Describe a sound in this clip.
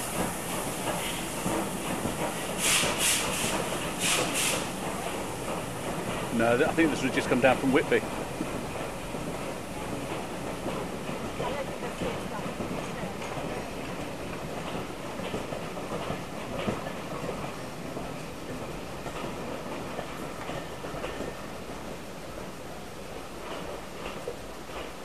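Railway carriages rumble and clatter slowly past on the track.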